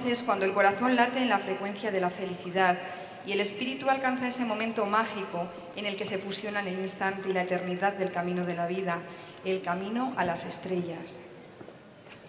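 A woman reads out calmly through a microphone.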